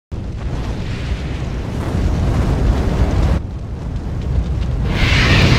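Erupting lava roars with a deep, steady rumble.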